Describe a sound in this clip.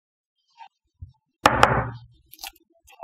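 Plastic paint jars knock down onto a table.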